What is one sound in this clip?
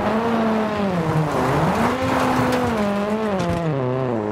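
Tyres crunch and spray over loose gravel.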